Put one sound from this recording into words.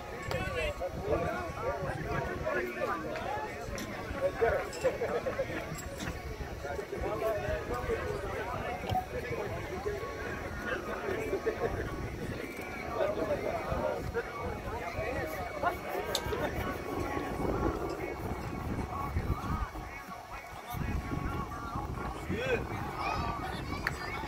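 A crowd of men and women chatter and call out nearby, outdoors.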